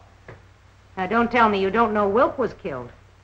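A woman speaks quickly.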